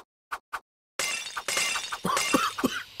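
Glass bottles shatter and splash one after another.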